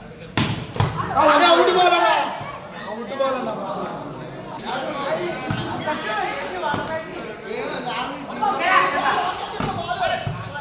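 A volleyball is struck with sharp thumps.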